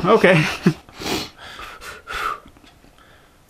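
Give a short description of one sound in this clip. A man sniffs a drink.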